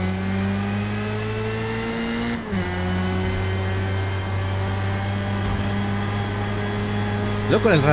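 A racing car engine drones at high revs, dips sharply as it shifts gear, then climbs steadily again.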